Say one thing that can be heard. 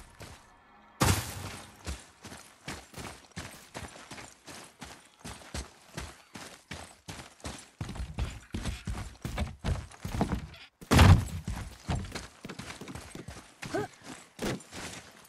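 Heavy footsteps thud and crunch on dirt and stone.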